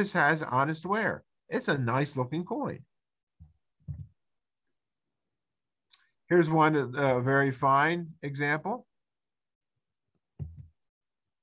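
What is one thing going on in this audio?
An elderly man speaks calmly through an online call microphone, pausing between phrases.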